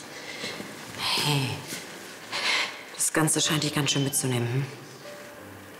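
A young woman sobs and speaks tearfully.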